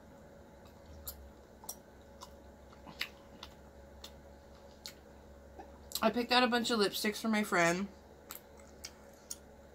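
Chopsticks click softly against a bowl.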